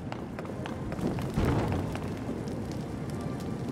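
Flames crackle and pop.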